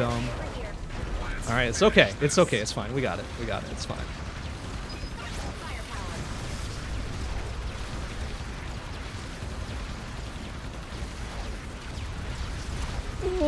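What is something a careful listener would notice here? Video game blasts and explosions crackle steadily.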